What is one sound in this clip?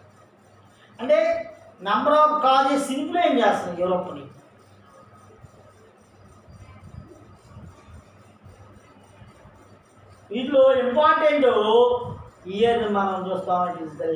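A middle-aged man speaks clearly and steadily, as if teaching, close by.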